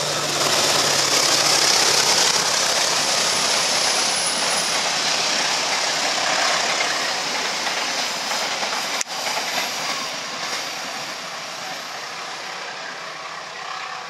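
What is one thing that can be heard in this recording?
A train rumbles and clatters past on the tracks.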